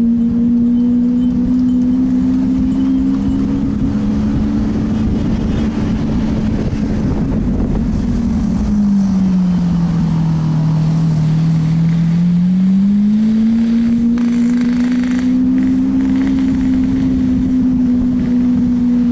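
A car engine drones steadily, dipping lower in pitch for a few seconds before rising again.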